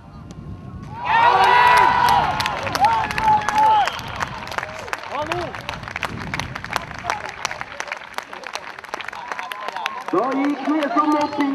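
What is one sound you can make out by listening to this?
A crowd cheers loudly in the open air.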